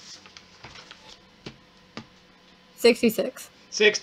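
A sheet of paper rustles as it is turned.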